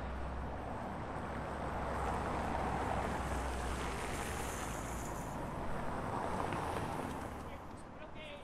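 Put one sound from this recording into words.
Cars pass by on a nearby street.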